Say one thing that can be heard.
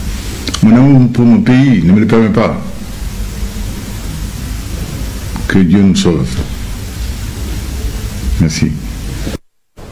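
A man speaks slowly and calmly through a microphone, in short phrases with pauses.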